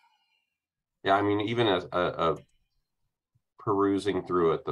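A second man speaks calmly over an online call.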